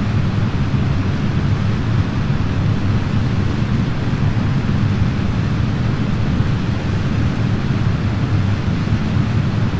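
Rocket engines roar steadily.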